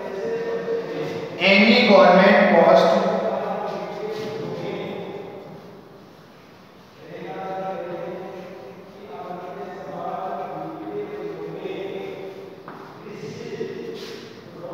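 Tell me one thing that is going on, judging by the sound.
A man speaks calmly nearby, explaining.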